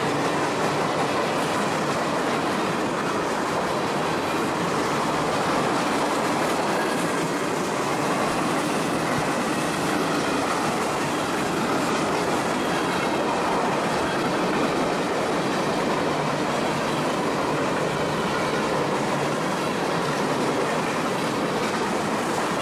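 Freight cars rumble and clatter steadily along a railway track.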